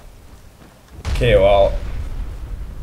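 A fiery blast bursts with a deep roar.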